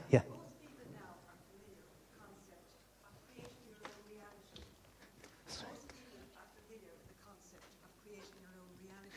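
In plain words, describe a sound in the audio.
An audience murmurs quietly.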